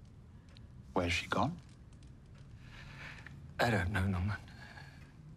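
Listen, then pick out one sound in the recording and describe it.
An elderly man speaks softly and sadly nearby.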